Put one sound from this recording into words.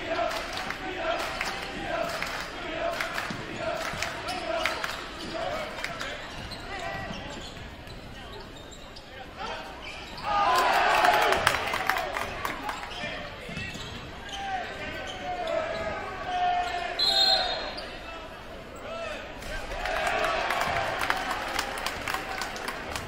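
A basketball bounces on a hardwood floor in a large echoing gym.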